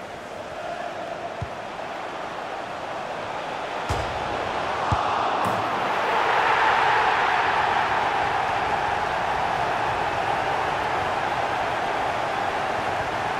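A large crowd roars and swells into loud cheering.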